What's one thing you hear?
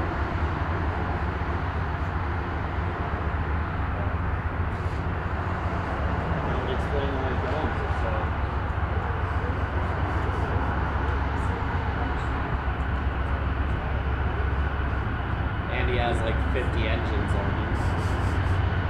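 Diesel locomotives rumble steadily as a freight train approaches.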